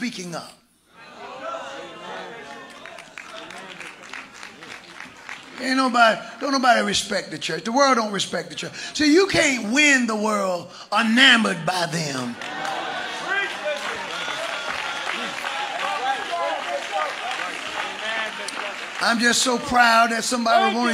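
A crowd cheers and calls out in response.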